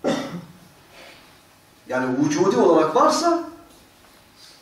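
An elderly man speaks with feeling into a microphone.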